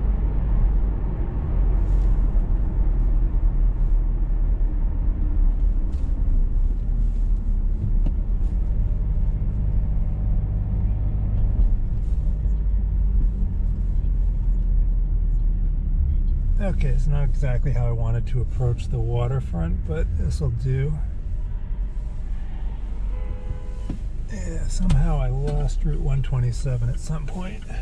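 A car engine hums steadily with low road rumble from the tyres.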